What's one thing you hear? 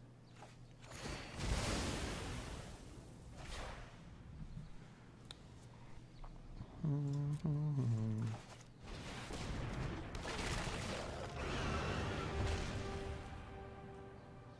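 Fiery bursts whoosh and crackle.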